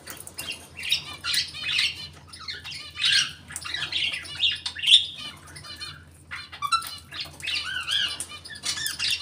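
Small caged birds chirp and twitter rapidly, close by.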